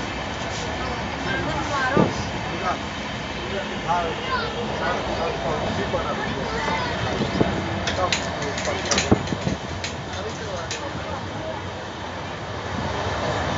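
Ceiling fans whir steadily.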